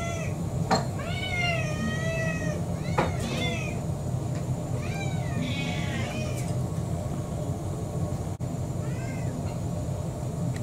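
Several cats meow insistently, close by.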